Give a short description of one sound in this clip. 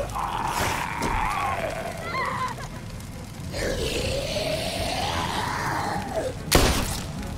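A young woman exclaims close to a microphone.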